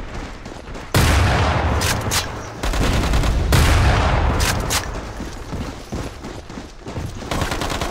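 A rifle fires a few loud, booming shots.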